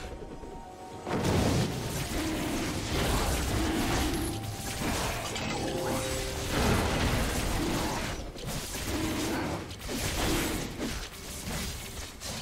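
Weapon strikes and spell effects clash in a fast fight.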